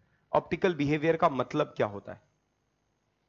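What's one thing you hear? A man speaks clearly into a microphone.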